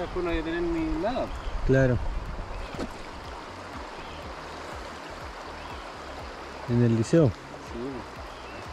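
A river flows steadily over stones nearby.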